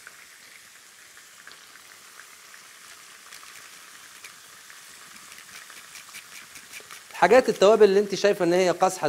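Food sizzles softly in a frying pan.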